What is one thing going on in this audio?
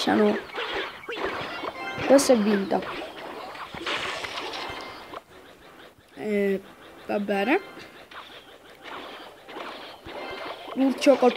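Cartoonish battle sound effects clash and pop from a mobile game.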